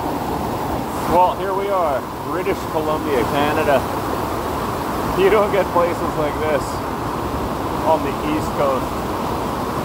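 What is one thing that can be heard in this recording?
A middle-aged man talks close by with animation.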